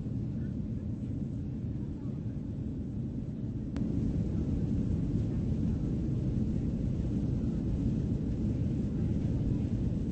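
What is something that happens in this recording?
A steady low engine drone hums inside an airplane cabin.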